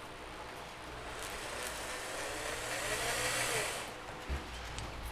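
A power drill whirs as it drives in a screw.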